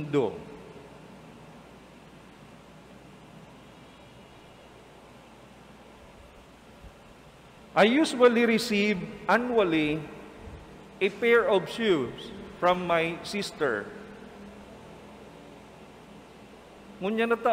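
A man speaks calmly into a microphone, with pauses, in an echoing room.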